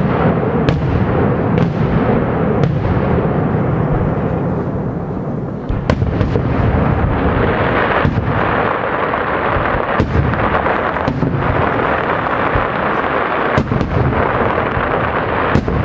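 Firecrackers crackle densely outdoors.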